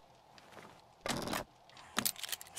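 A crossbow is reloaded with a mechanical clack.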